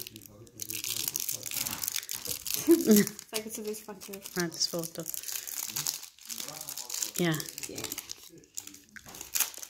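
A plastic sweet wrapper crinkles and rustles close by.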